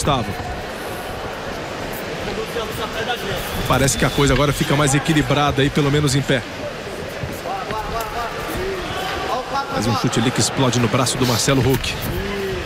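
A crowd murmurs in a large hall.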